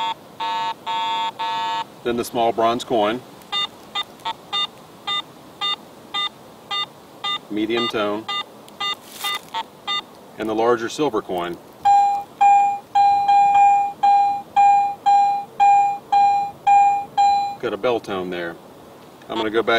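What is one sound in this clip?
A metal detector beeps in short, evenly repeated electronic tones.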